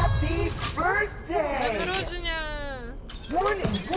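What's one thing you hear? A robotic creature speaks in a strained, distorted voice.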